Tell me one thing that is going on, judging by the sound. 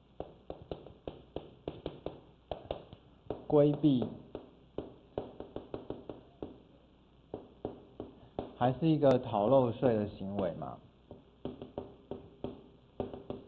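Chalk taps and scratches on a board in quick strokes.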